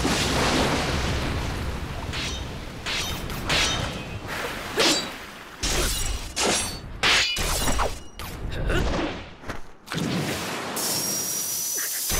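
Blades clash with sharp metallic rings.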